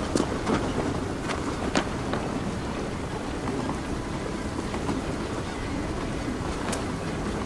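Footsteps tread on stone and wooden planks.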